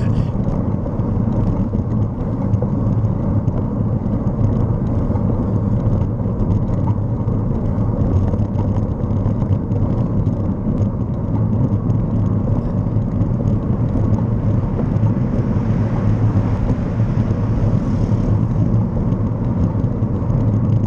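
A vehicle's engine rumbles steadily as it drives along.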